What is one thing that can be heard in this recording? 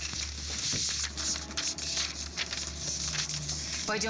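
Paper rustles in someone's hands.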